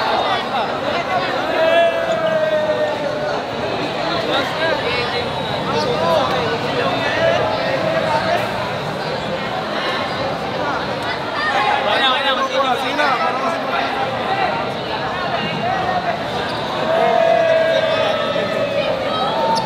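A large crowd of young people chatters and cheers in a big echoing hall.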